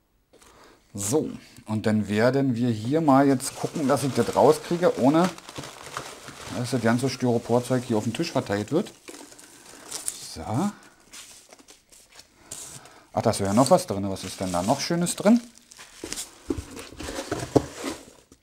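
Foam packing pieces rustle and crunch.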